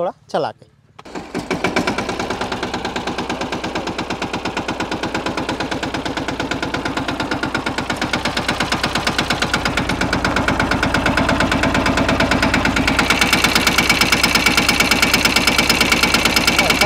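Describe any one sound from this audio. A tractor's diesel engine starts and chugs steadily.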